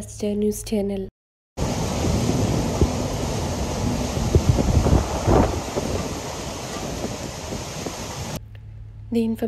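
Strong wind roars and gusts outdoors.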